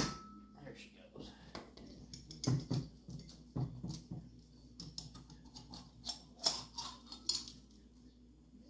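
Metal engine parts clink and scrape as they are handled.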